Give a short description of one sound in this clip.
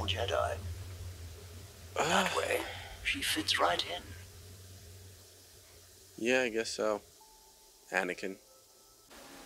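A young man talks with animation close to a microphone, in short bursts.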